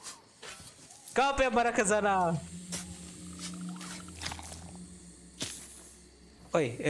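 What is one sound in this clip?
A shovel digs into sand with a dull thud.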